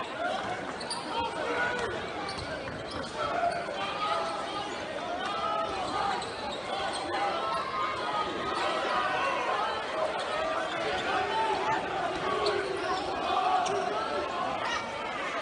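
A crowd chatters and cheers throughout in a large echoing gym.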